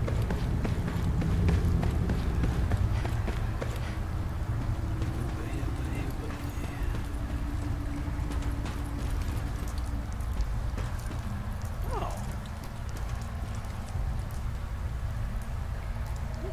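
Footsteps tread across a hard metal floor.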